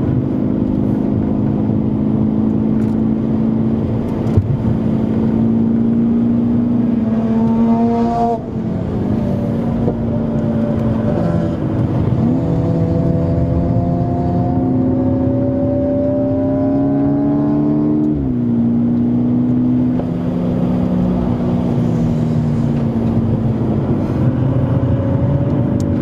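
A car engine roars loudly from inside, rising and falling in pitch as gears shift.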